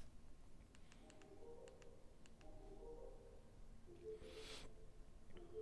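A television plays soft, quiet musical tones through its speakers.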